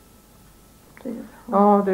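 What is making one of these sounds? An elderly woman speaks calmly up close.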